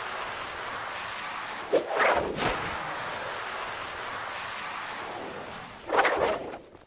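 A board grinds along a rail with a steady rushing whoosh.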